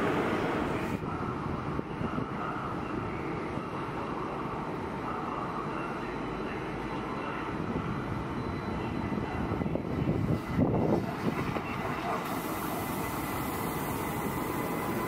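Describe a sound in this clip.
A high-speed train rolls slowly into a station with a low hum.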